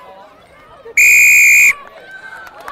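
A referee's whistle blows one long, sharp blast.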